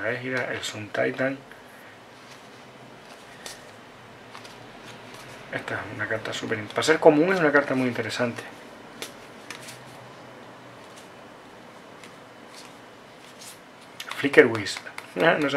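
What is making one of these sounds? Playing cards slide and flick softly against each other as they are sorted by hand.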